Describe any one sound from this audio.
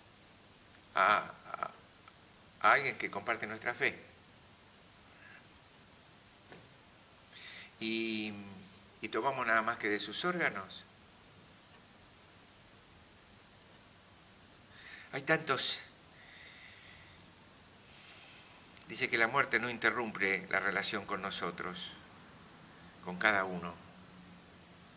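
An older man speaks slowly and calmly into a microphone, with long pauses.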